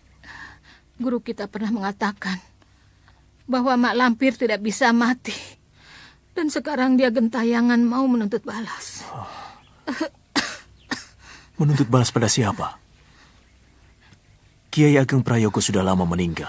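An elderly woman cries out and wails in distress, close by.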